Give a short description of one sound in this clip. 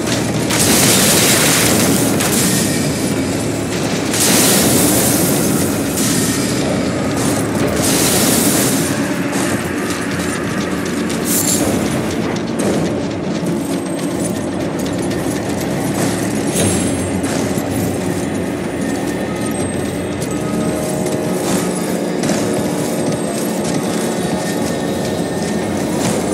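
Armoured footsteps clatter steadily on roof tiles.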